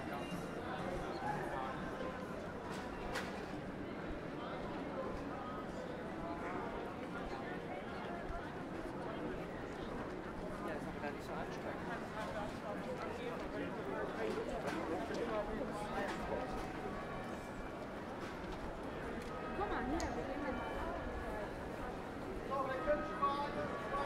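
A crowd of people chatters throughout outdoors.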